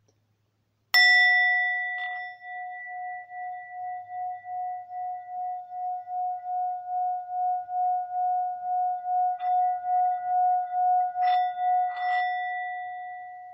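A bell rings once and its tone hums on, slowly pulsing and fading.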